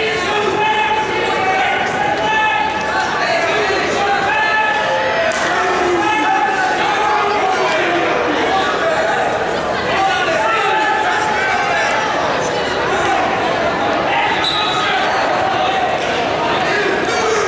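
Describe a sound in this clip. A crowd of spectators chatters throughout a large echoing hall.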